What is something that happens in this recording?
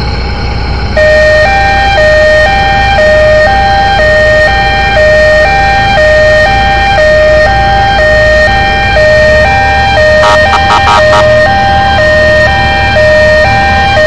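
A two-tone siren wails steadily.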